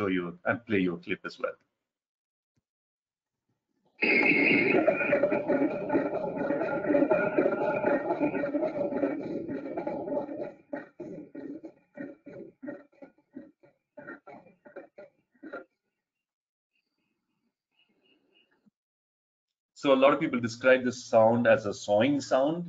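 A man talks calmly over an online call.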